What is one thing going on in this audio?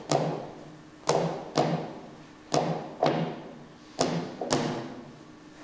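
A wooden pole strikes repeatedly with sharp thuds.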